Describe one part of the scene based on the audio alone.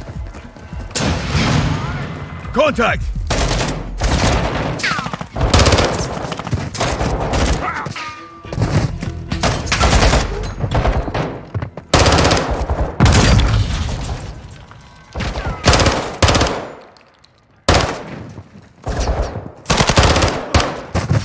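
Submachine gun fire rattles in loud bursts, echoing indoors.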